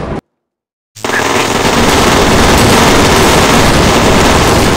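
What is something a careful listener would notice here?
Guns fire in rapid, continuous bursts.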